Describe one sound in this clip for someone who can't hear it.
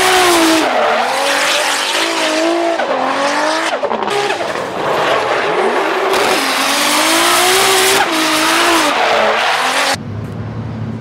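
A car engine revs hard and roars.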